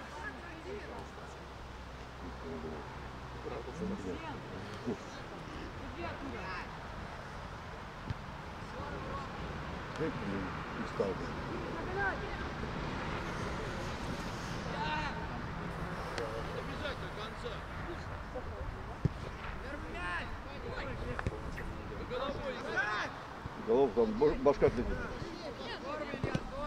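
Young men shout to each other across an open field, some distance away.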